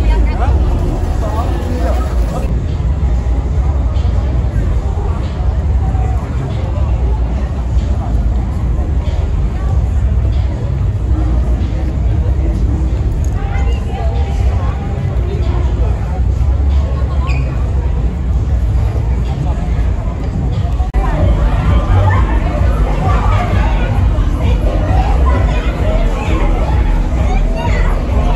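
Footsteps shuffle on pavement.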